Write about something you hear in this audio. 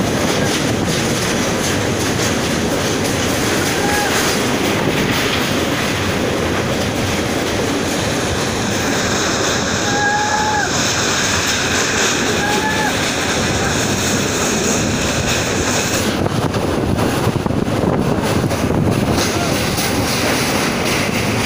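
A train rumbles and clatters steadily over a steel bridge.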